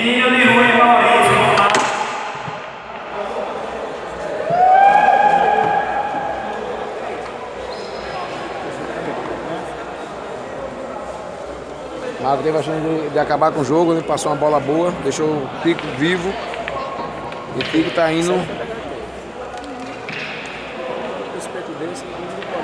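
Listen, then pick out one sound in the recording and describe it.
Men talk and call out nearby in a large echoing hall.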